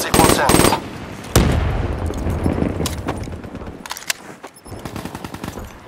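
A rifle clicks and clatters as it is reloaded.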